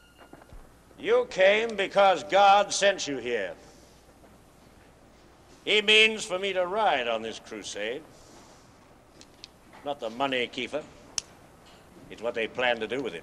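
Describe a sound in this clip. An elderly man speaks with animation close by.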